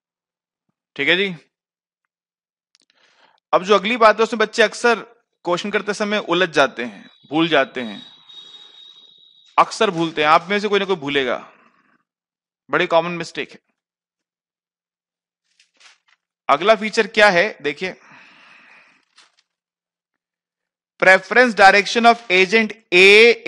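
A man speaks calmly into a close headset microphone, explaining in bursts with pauses.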